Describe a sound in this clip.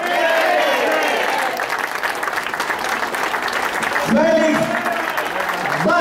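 A crowd claps along.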